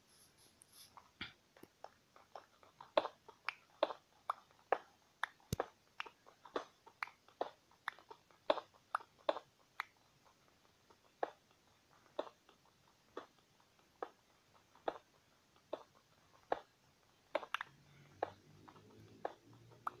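Stone blocks are chipped with a pickaxe in quick, repeated dull taps.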